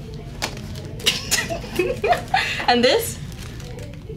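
Two young women laugh together.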